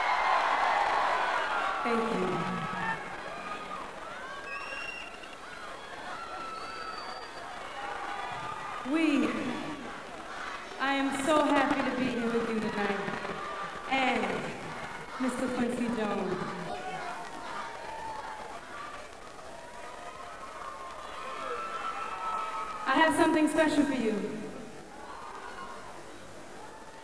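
A young woman sings slowly into a microphone.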